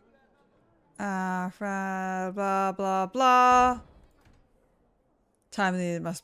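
A young woman sings close to a microphone.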